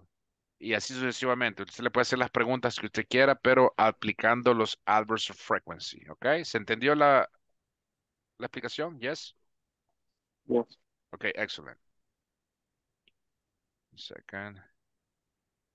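A man speaks calmly through a microphone, as if on an online call.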